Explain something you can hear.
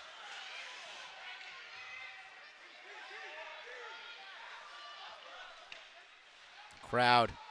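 A crowd murmurs faintly in an echoing rink.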